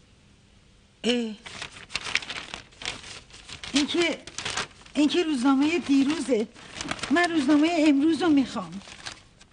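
An elderly woman talks with emotion, close by.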